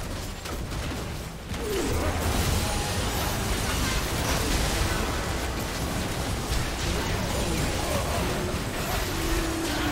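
Game spell effects crackle and burst in a busy fight.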